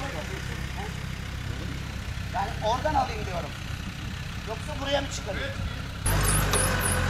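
An off-road vehicle's engine rumbles low and strains.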